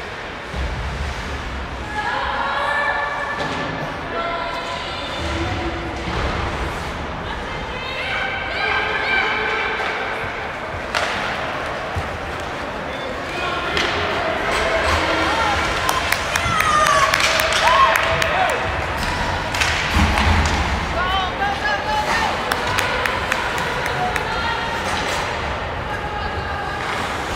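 Spectators nearby call out and cheer.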